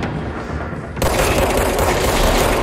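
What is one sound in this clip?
A gun fires in a loud, rough burst.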